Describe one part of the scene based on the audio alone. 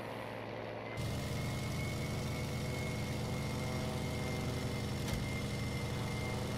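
A propeller engine roars louder and closer from inside the cockpit.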